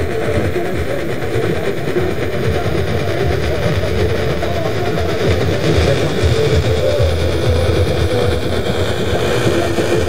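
A radio plays music loudly through its speaker, close by.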